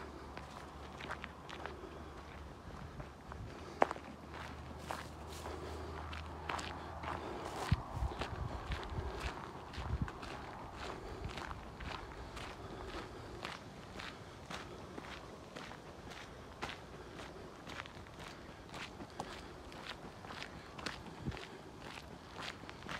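Footsteps crunch on a gravel path at a steady walking pace.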